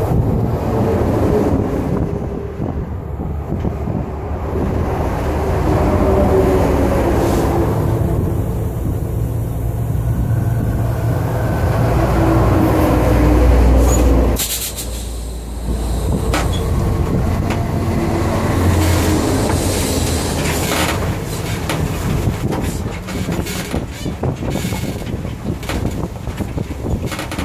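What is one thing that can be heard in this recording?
A truck engine rumbles close by.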